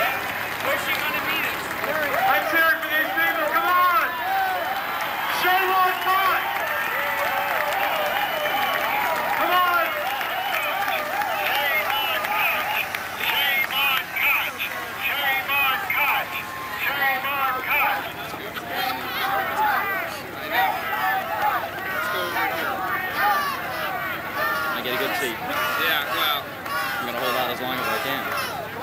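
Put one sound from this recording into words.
A crowd chatters loudly outdoors, with many men and women talking at once.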